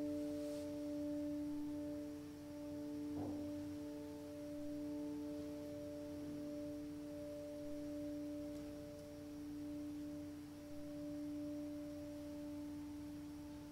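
A handbell choir rings sustained, overlapping bell tones in an echoing hall.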